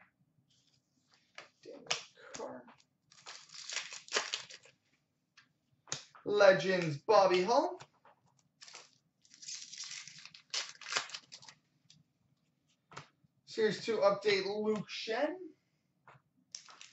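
Paper cards rustle and flick as they are shuffled by hand.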